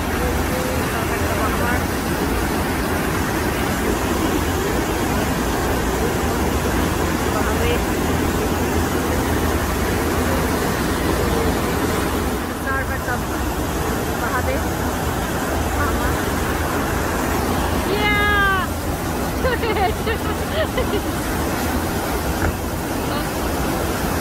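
Water rushes and churns loudly and steadily.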